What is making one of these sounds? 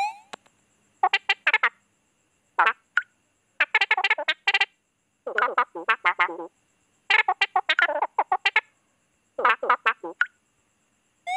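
Chattering electronic blips sound in short bursts.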